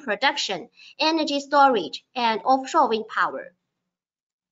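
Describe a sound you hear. A young woman speaks calmly through a microphone on an online call.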